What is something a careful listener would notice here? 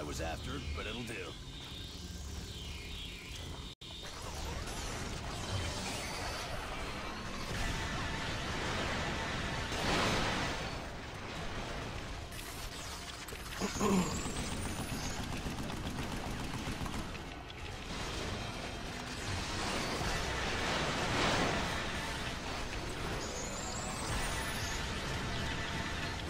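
Laser blasts and explosions boom in a video game.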